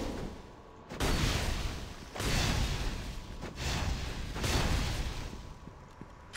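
Magic spells whoosh and roar in short bursts.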